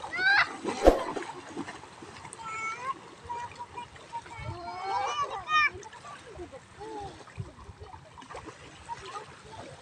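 Water splashes as children wade and play.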